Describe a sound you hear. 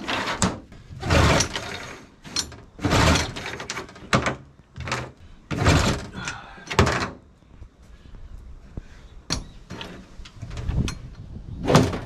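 Hands tap and scrape on a metal hull.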